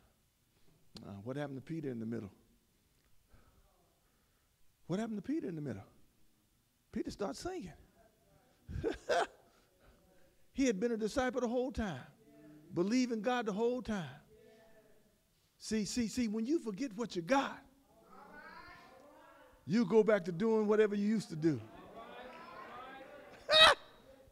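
A man preaches with animation through a microphone, in bursts with pauses, in a large echoing hall.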